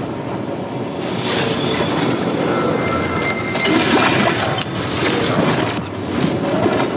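A treasure chest opens with a bright, sparkling chime.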